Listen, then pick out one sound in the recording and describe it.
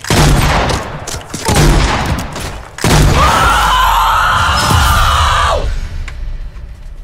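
A young man shouts and yells excitedly close to a microphone.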